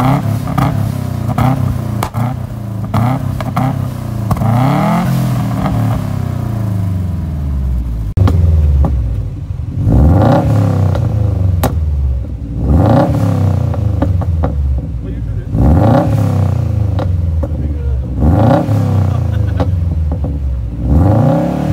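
An exhaust crackles and pops between revs.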